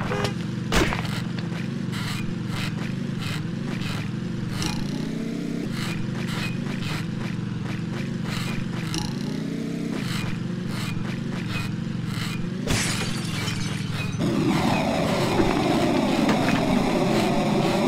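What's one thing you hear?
A small engine buzzes and revs as a kart drives along.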